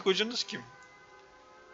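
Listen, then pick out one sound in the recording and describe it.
A young man speaks briefly into a close microphone.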